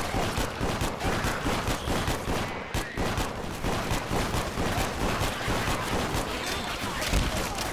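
Zombies snarl and groan.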